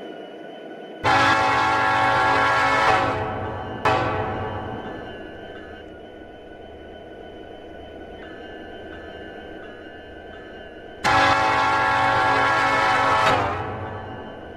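A train horn blares loudly in long blasts.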